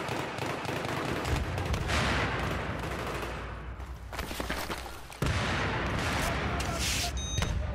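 A low rumble of battle noise goes on throughout.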